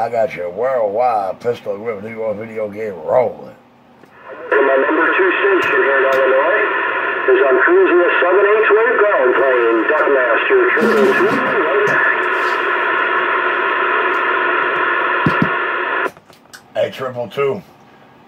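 A CB radio receives a crackly, distorted transmission through its speaker.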